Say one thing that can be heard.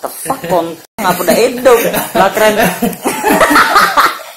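A boy laughs loudly.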